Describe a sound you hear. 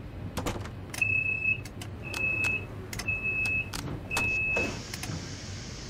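A cab warning alarm beeps in short, repeated tones.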